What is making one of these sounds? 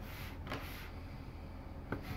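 A card slides softly across a table.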